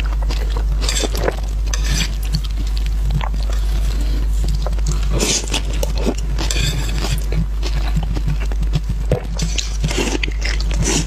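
A young woman chews and slurps food wetly, close to a microphone.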